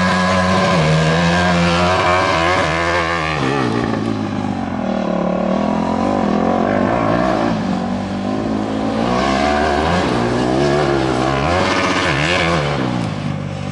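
Tyres skid and spray gravel.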